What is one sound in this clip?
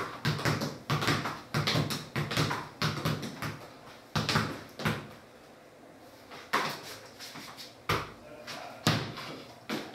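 A ball thuds repeatedly against a foot and a head.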